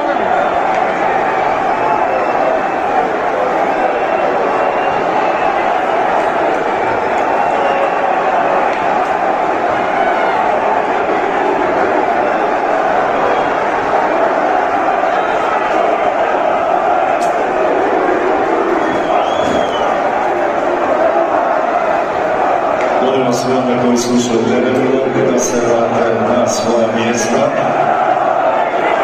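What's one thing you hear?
A huge stadium crowd roars and chants loudly.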